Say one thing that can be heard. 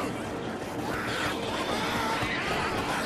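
Zombies snarl and growl close by.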